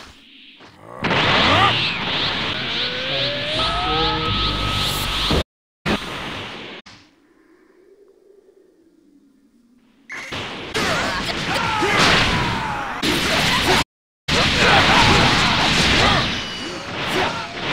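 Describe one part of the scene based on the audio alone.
Energy blasts whoosh and crackle loudly.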